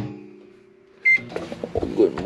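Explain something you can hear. A microwave keypad beeps once.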